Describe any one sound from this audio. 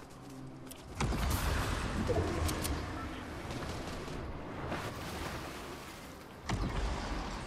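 Water splashes and churns as a swimmer moves through it.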